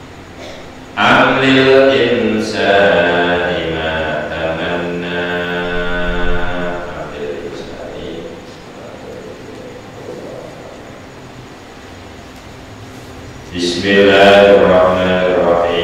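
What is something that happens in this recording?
A middle-aged man chants in a melodic voice through a microphone.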